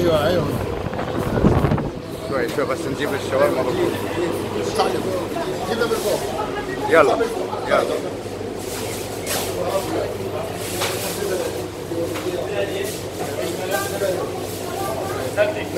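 Many voices chatter around in a busy indoor room.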